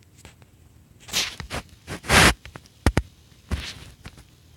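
Short whooshing game menu sound effects play in quick bursts.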